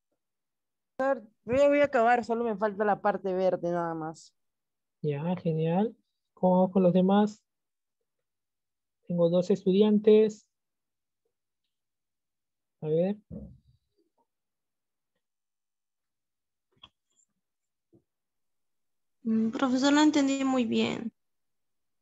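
A woman speaks calmly into a close microphone, in short bursts with pauses.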